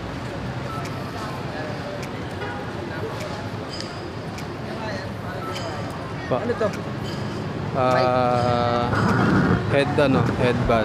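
Street traffic hums steadily outdoors.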